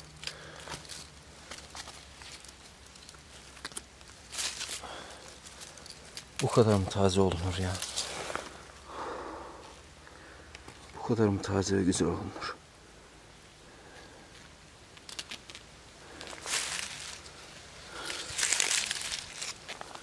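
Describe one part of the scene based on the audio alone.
Dry leaves rustle close by as a mushroom is picked from the forest floor.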